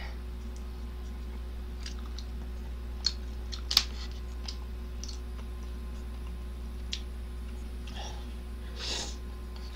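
A young man chews noodles noisily close to a microphone.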